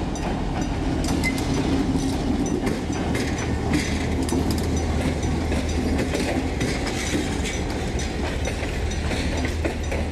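Train wheels clatter over the rails as the carriages pass.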